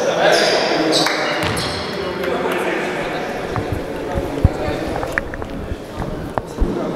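Young men talk, their voices echoing in a large hall.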